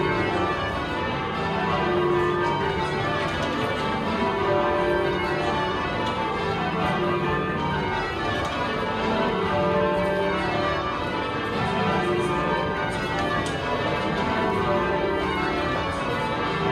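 Church bells ring out loudly in a steady, overlapping sequence of peals.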